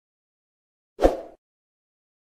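A quick whoosh sweeps past.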